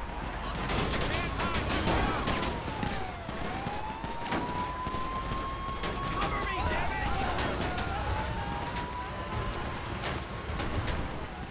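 A siren wails, rising and falling.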